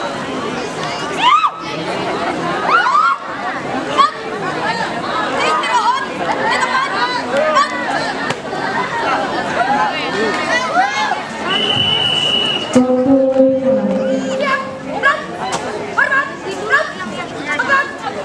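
A crowd of young people chatters and shouts excitedly outdoors.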